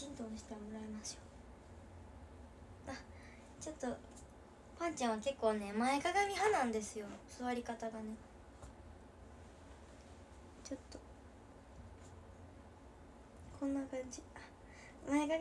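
A young girl talks close by with animation.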